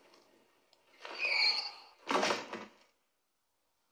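A young woman exclaims in shock close to a microphone.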